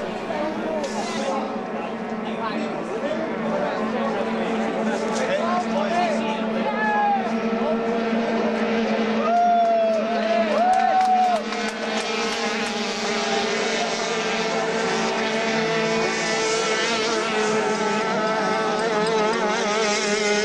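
Racing powerboat engines roar and whine across the water.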